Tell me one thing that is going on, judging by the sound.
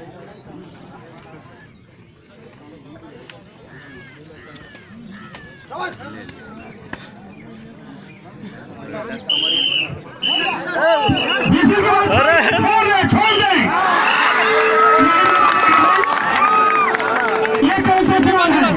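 A large crowd of men murmurs and chatters outdoors.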